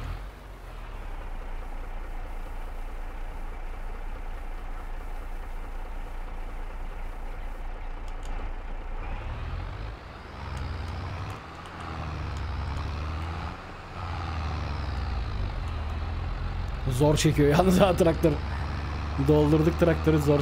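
A tractor engine hums steadily, then revs up as the tractor drives off.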